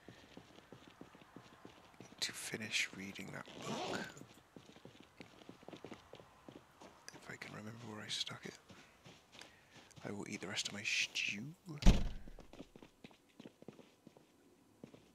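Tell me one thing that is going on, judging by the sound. Footsteps tap softly and steadily on a hard floor.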